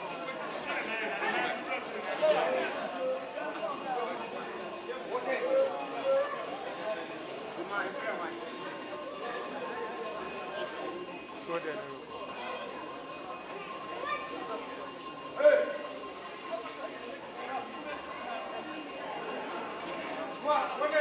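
A crowd of men talks and murmurs nearby, outdoors.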